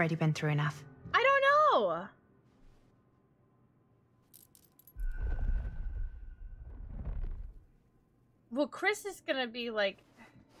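A young woman talks casually into a close microphone.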